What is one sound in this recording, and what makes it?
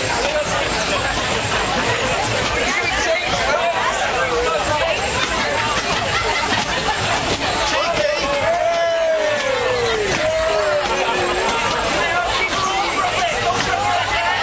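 A crowd of people chatters and shouts loudly nearby.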